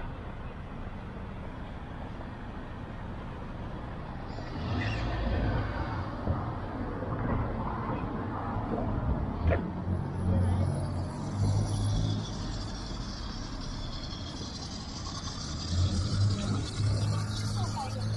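Cars drive by on a city street.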